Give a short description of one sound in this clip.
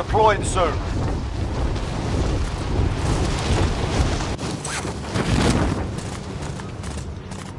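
Wind rushes loudly past during a fall through the air, then dies away.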